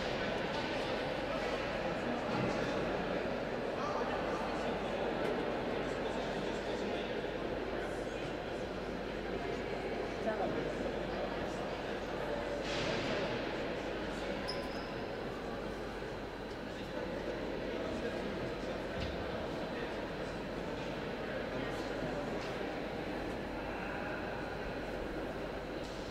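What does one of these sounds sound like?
Skate blades scrape and glide across ice in a large echoing hall.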